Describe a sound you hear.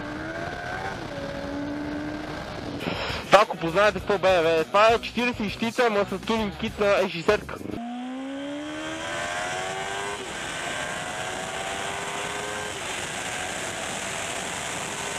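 A motorcycle engine whines, rising in pitch as it speeds up and shifts gears.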